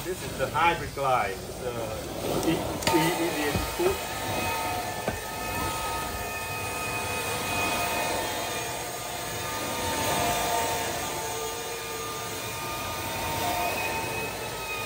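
A carpet extraction machine whines and sucks steadily.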